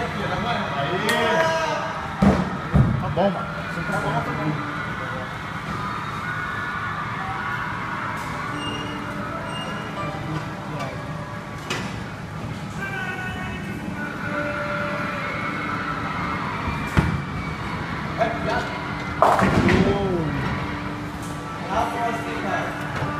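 Young men talk and cheer with animation nearby.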